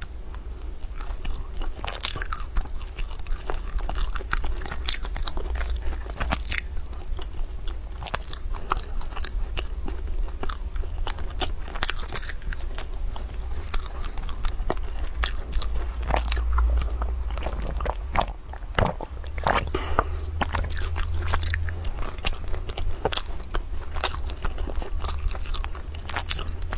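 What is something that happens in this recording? Flaky pastry crackles as a young woman's hands tear it apart.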